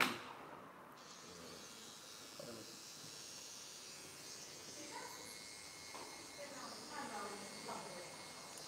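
An electric trimmer buzzes steadily.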